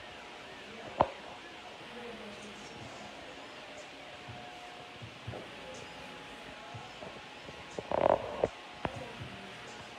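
A hair straightener clacks as it clamps and releases hair.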